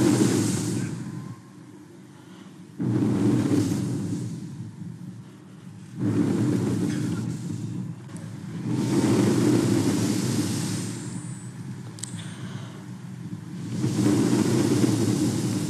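An elderly woman speaks slowly and calmly into a microphone.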